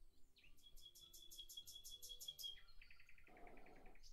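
A golf club strikes a ball with a soft tap.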